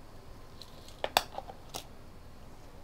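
A plastic parts tray clicks and rattles on a hard surface.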